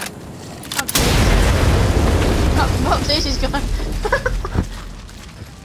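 A loud explosion booms and rumbles slowly away.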